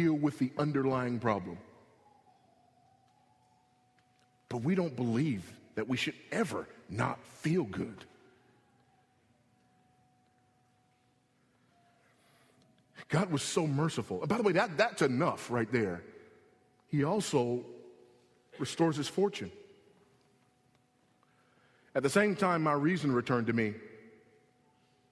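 A middle-aged man speaks with emphasis into a microphone, pausing between phrases.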